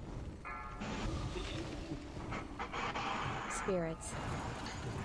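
Magic spells whoosh and crackle in a battle.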